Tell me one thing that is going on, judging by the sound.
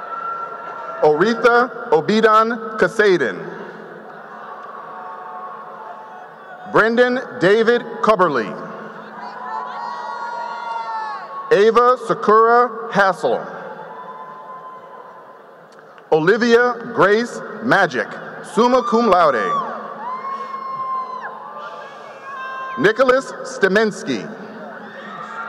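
A crowd cheers and whoops loudly in a large echoing hall.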